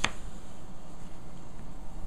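Plastic pipes knock softly as a hand moves them.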